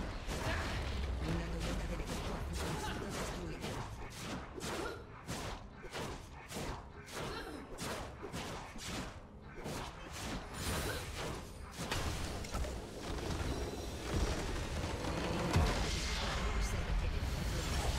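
Fighting sound effects clash, crackle and boom rapidly.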